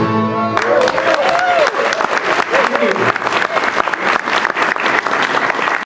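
Acoustic guitars strum a steady rhythm.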